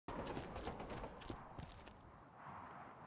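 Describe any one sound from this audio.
A gun fires a quick burst of shots.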